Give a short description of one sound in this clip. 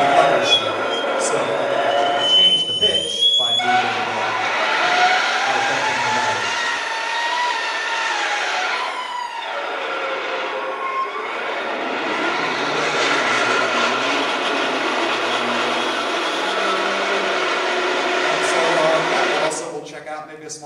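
Loud, dense electronic music with drums and metallic ringing plays through loudspeakers in a large hall.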